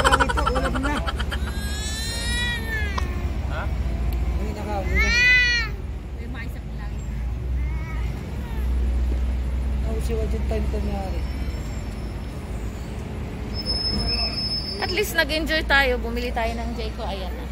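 A young woman talks close by in a high, animated voice.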